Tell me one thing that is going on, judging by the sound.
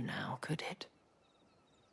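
A young woman speaks calmly and warmly.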